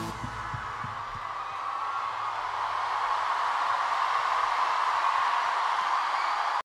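A large crowd cheers in a big echoing hall, growing louder.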